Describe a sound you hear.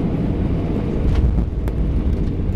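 Aircraft wheels thump onto the runway.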